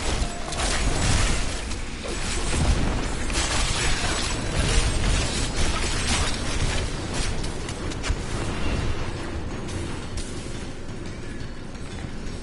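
Magic spells crackle and burst in a loud fight.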